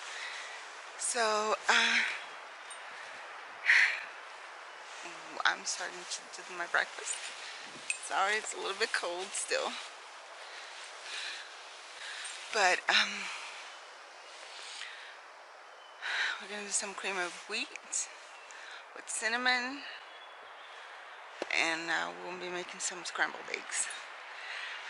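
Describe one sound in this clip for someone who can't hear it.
A woman speaks close by, with animation, in pauses.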